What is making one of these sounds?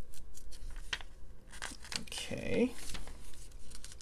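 A paper page turns.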